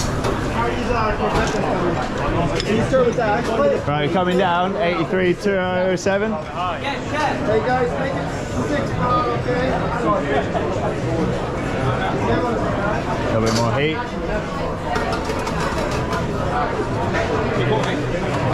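Plates and metal pans clink and clatter.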